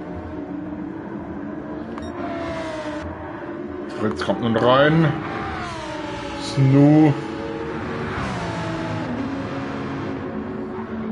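A racing car engine roars at high revs, rising in pitch and dropping with each gear shift.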